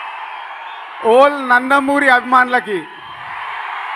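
A man speaks loudly into a microphone over loudspeakers.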